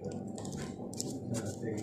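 A knife cuts through crispy food.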